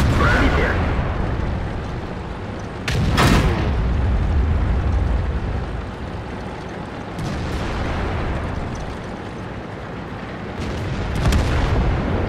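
Shells explode with heavy blasts.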